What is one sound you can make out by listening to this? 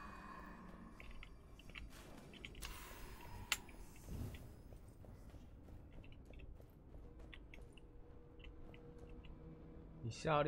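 Game sound effects chime and clink as loot is picked up.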